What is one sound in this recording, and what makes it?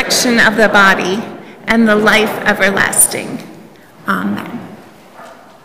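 A middle-aged woman speaks calmly into a microphone in a room with a slight echo.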